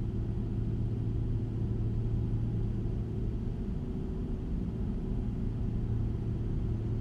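A truck's diesel engine drones steadily at low pitch.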